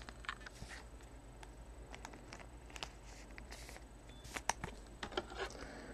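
A plastic wrapper crinkles softly between fingers.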